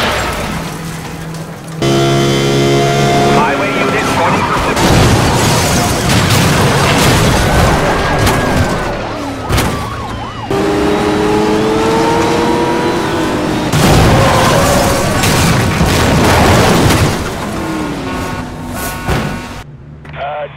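Cars crash with loud metal impacts.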